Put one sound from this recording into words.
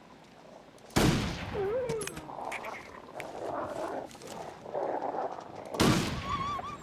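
A rifle fires loudly.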